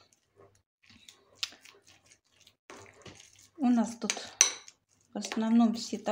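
A spoon clinks and scrapes against a bowl.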